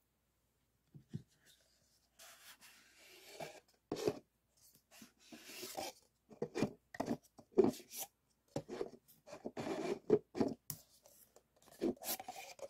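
Paper cups rustle and scrape as hands handle them.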